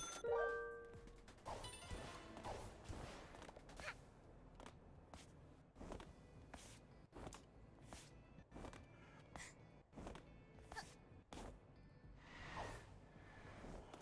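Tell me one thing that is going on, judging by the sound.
Quick light footsteps patter along a hard floor.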